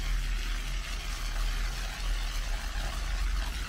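A brush scrubs a foamy car wheel with a wet, rasping swish.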